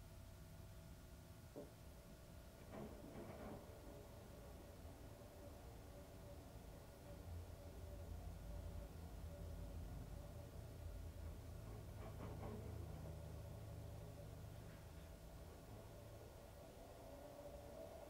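A washing machine drum spins with a steady low hum.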